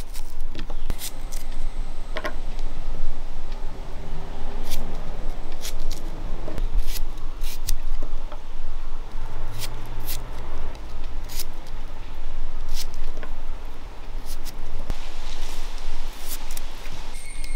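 A knife slices through onions in short crisp cuts.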